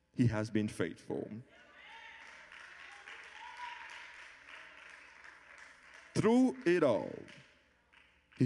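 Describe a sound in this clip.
A man speaks with feeling into a microphone, heard over loudspeakers in a large hall.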